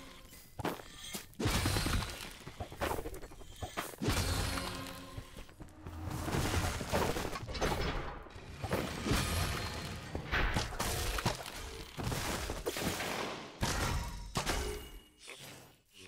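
Sword blows swoosh and thud in quick bursts.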